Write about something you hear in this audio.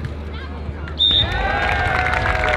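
A crowd cheers and whistles loudly.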